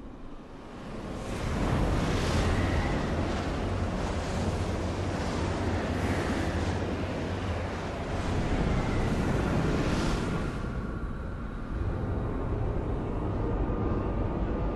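A strong wind howls and gusts outdoors through driving snow.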